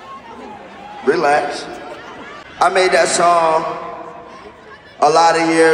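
A young man sings loudly into a microphone over a loudspeaker system.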